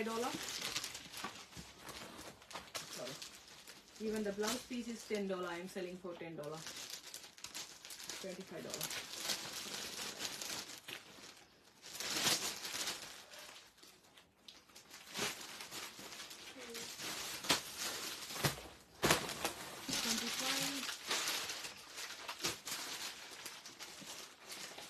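Plastic wrapping crinkles and rustles.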